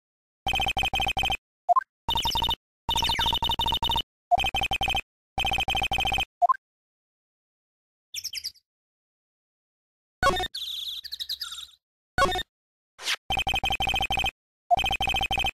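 Rapid electronic blips chatter in quick bursts.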